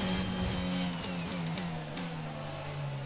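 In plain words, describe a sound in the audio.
A racing car's gearbox pops and clicks through quick downshifts.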